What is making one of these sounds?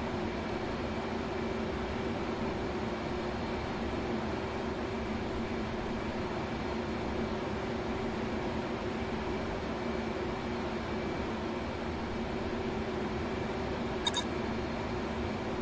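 A jet engine hums steadily from inside a cockpit.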